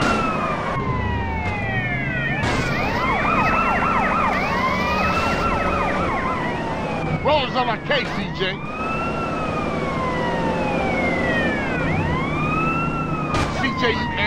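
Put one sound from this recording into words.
Tyres screech as a car skids.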